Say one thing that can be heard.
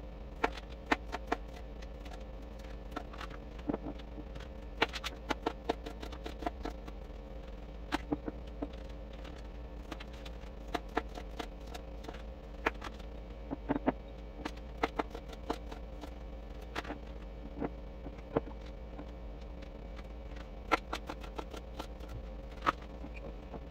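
A knife chops through fruit onto a plastic board with sharp taps.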